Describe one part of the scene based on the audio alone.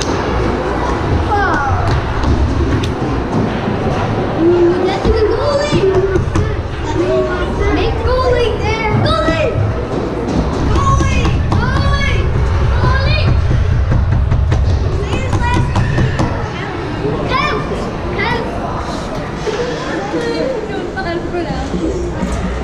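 Skate blades scrape on the ice nearby.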